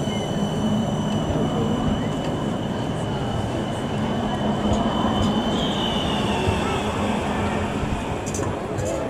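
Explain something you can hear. A tram rumbles past close by, its wheels whining on the rails.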